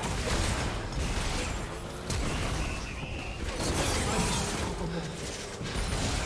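Magic blasts and hits crackle and thud in a busy fight.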